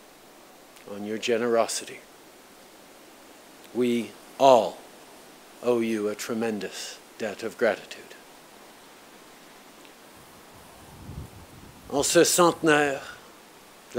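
A man speaks slowly and solemnly into a microphone, heard through loudspeakers outdoors.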